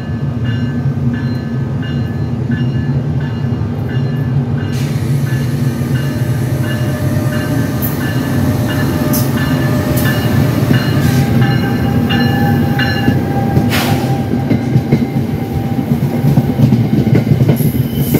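An electric train rumbles loudly past close by.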